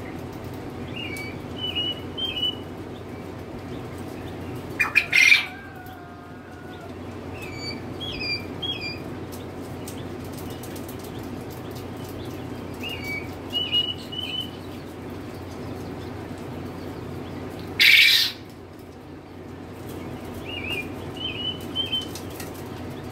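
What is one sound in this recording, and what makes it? A chick peeps in short bursts of high chirps.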